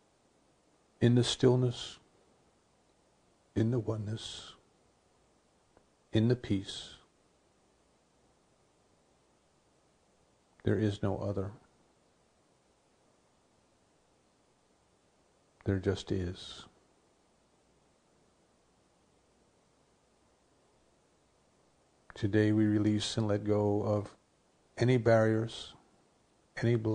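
An older man speaks calmly in short phrases into a close microphone, with long pauses.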